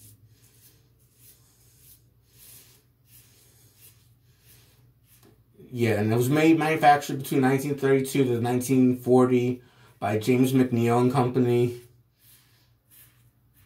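A razor scrapes across stubble.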